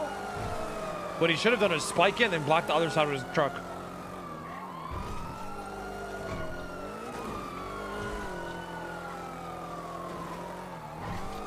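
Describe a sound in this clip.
A car engine hums and rises and falls in pitch as it drives.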